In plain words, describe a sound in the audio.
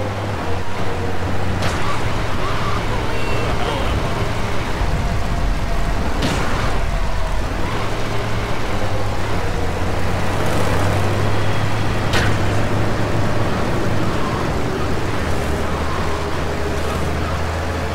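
Heavy rain hisses down.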